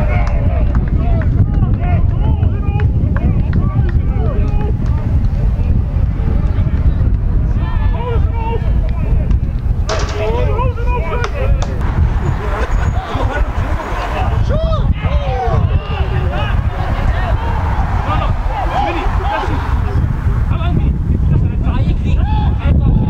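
Young men shout and call out from across a field.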